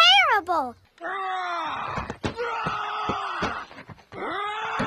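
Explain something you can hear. A man's cartoonish voice shouts excitedly.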